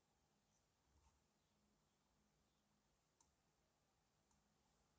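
Metal tweezers tap and click softly against a small plastic part.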